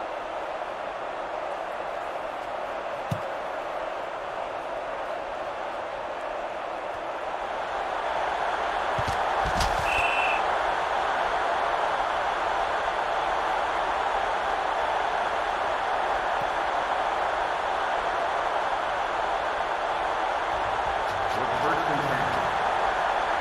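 A stadium crowd roars, swelling louder partway through.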